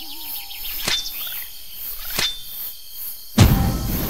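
A blade slashes through a leafy bush.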